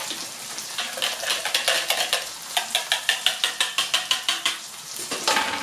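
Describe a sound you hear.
A fork whisks rapidly in a bowl.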